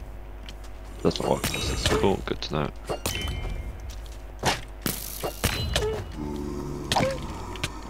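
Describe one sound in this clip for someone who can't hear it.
Sword blows land on a creature with sharp, quick hits.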